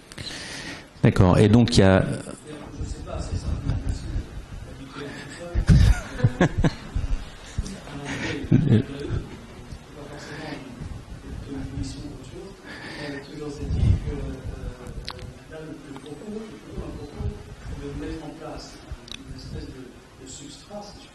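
An elderly man speaks calmly into a microphone in a large echoing room.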